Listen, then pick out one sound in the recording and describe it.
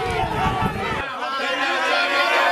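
A group of young men cheer and shout loudly close by.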